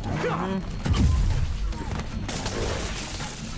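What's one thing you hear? Punches thud with heavy impacts.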